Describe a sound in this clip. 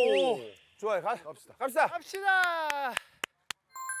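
Men speak and exclaim with animation close by.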